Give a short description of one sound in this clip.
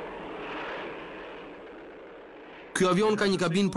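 A jet engine roars.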